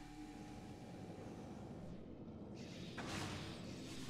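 A rolling ball whirs along a metal tube.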